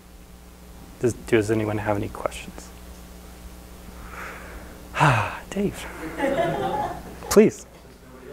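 A man speaks in a room, with pauses between phrases.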